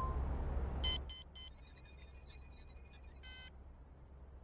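Rapid electronic beeps chirp as a message panel opens.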